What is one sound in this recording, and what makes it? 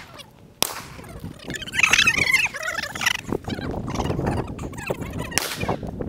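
A shotgun fires with a loud bang that echoes outdoors.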